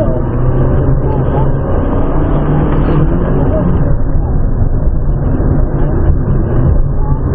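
A car engine roars loudly, revving up and down as it races.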